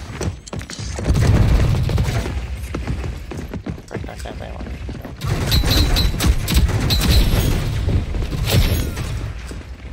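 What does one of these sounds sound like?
Automatic guns fire in rapid, loud bursts.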